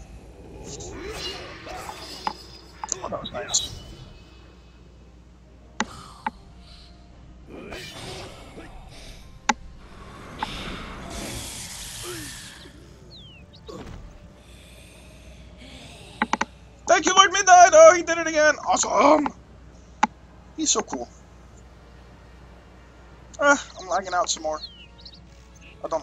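A man speaks animatedly in a silly puppet voice through a microphone.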